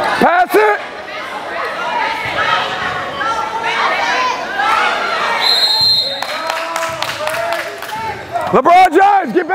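Children and adults shout and chatter in an echoing gym.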